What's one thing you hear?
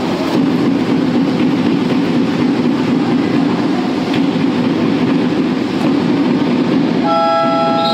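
Swimmers splash and churn through the water.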